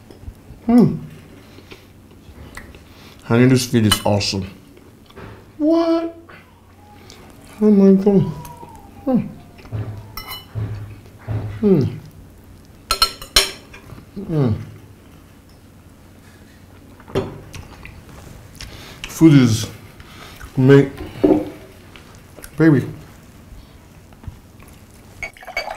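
Cutlery clinks on plates.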